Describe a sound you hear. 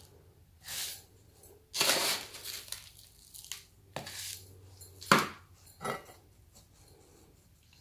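Gloved fingers press and rustle through gritty potting soil in a pot.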